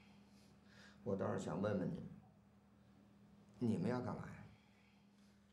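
A middle-aged man speaks in a questioning tone, close by.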